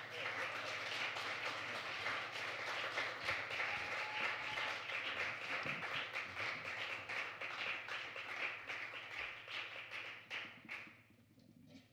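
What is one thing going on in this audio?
A small band plays lively jazz with drums and bass.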